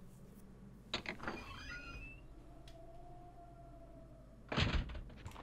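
A door swings open with a faint creak.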